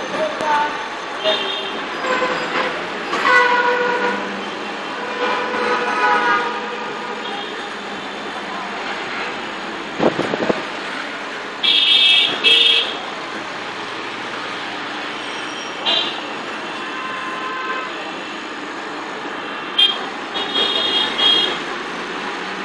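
Vehicle horns honk again and again nearby.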